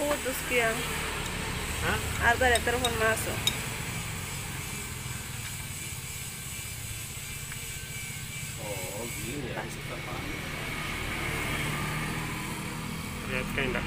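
A metal tool clinks against an engine part.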